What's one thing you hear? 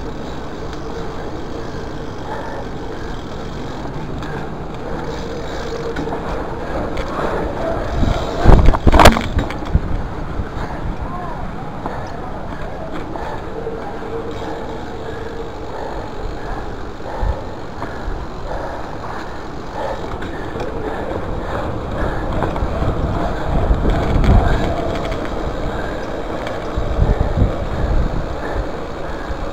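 Wind buffets a microphone.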